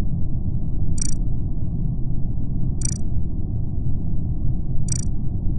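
Short game blips sound as menu options open.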